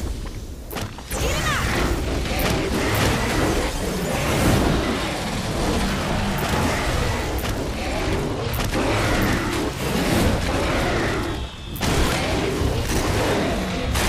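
Explosions boom and roar one after another.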